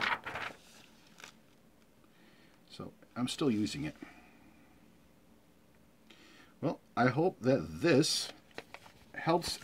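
Paper pages rustle and flap as they are turned.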